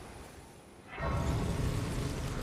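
A shimmering magical chime swells up.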